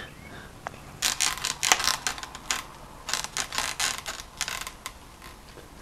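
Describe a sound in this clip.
Debris crunches and crackles underfoot.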